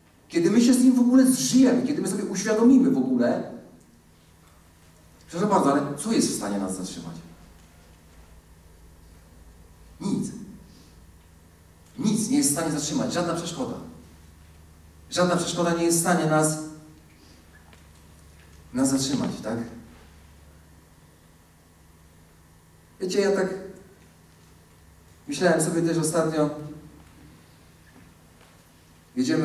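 A man speaks with animation into a microphone, heard through loudspeakers in a large echoing hall, in short bursts with pauses.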